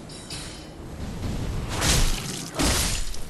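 A bolt of lightning crackles and whooshes through the air.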